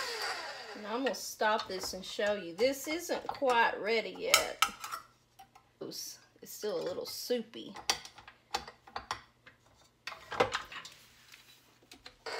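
A metal whisk clicks and clinks as it is fitted onto a mixer.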